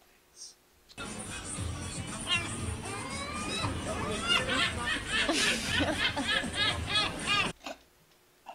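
A seagull cries out in loud, repeated squawks.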